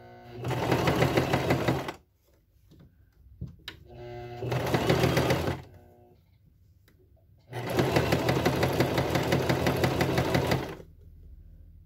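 A sewing machine runs in fast bursts, stitching with a rapid rattle.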